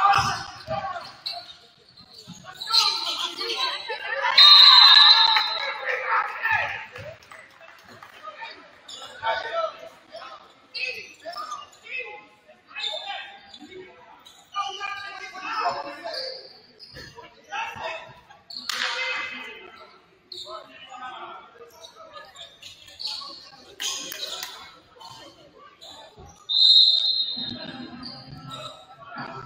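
Young men shout and call out across an echoing gym.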